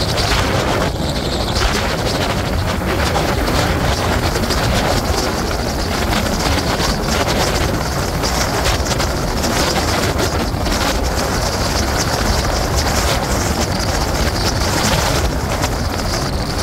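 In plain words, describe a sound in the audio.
Tyres hiss steadily on a wet road.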